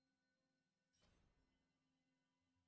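A soft menu chime sounds once.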